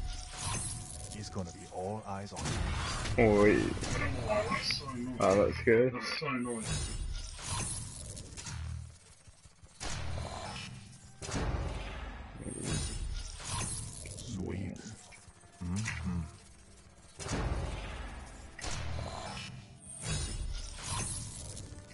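Short whooshing and chiming game effects play as items are revealed.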